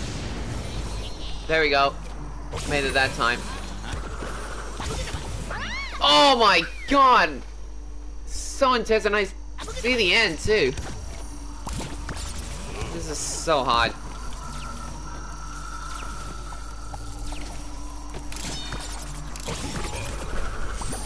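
Cartoonish game sound effects bleep and whoosh.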